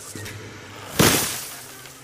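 A gunshot fires with a sharp crack.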